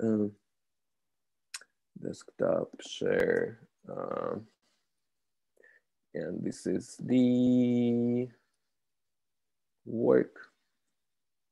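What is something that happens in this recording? A young man speaks calmly over an online call, in short phrases.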